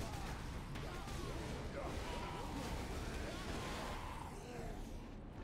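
Heavy thuds rumble low throughout.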